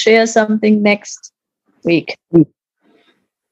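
An elderly woman speaks warmly over an online call.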